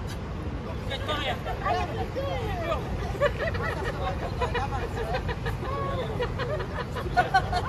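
An elderly man and woman talk close by.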